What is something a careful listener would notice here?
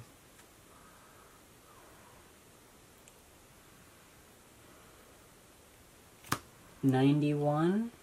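Playing cards are placed softly on a mat.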